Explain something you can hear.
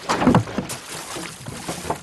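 A wooden pole pushes a boat through shallow water with a splash.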